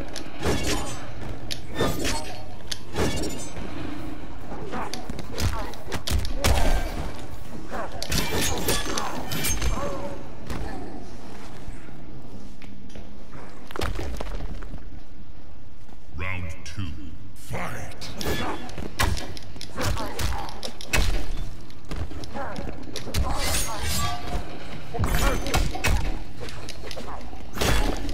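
Punches and kicks thud hard in a fight.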